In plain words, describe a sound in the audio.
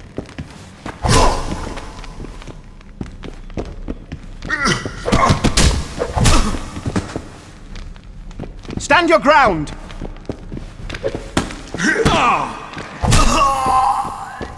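Fists thud against bodies in a brawl.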